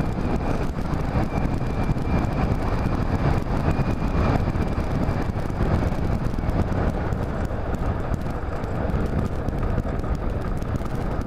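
Wind buffets loudly against a moving rider.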